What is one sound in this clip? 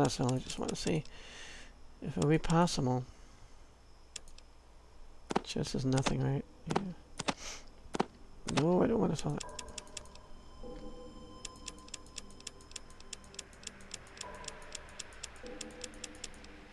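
Short clicks sound now and then as items are moved.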